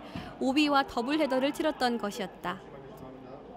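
A young woman speaks clearly into a close microphone.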